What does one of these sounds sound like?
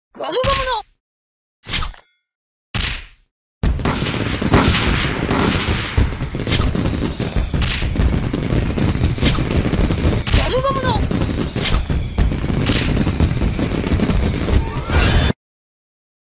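Game battle sounds of hits, blasts and clashing weapons play loudly.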